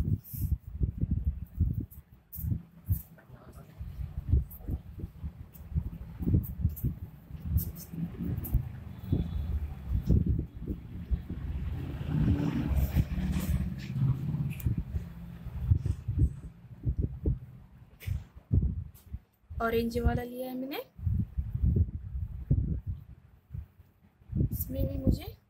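Plastic cords rustle and rub as hands knot them.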